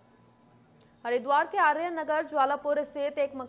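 A young woman reads out the news clearly and close up.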